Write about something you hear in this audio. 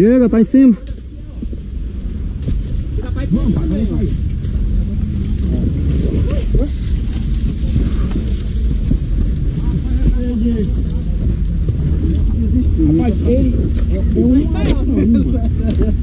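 Footsteps scrape and crunch on dry earth and rock.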